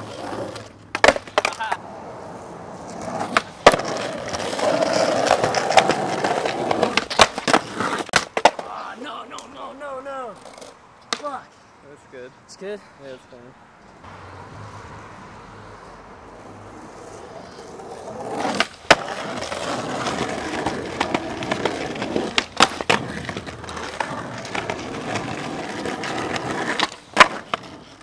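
A skateboard's tail snaps and the board clacks down on the ground.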